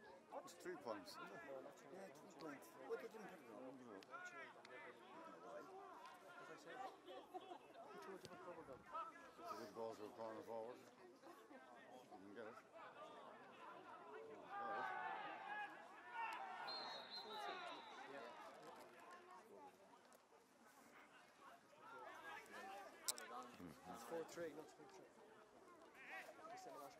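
Men talk and call out nearby in a crowd of spectators outdoors.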